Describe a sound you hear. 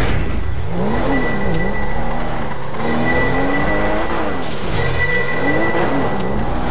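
A car engine revs up and down loudly.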